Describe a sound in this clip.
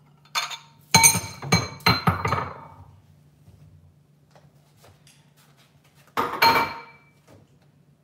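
Ceramic dishes clatter and clink against each other nearby.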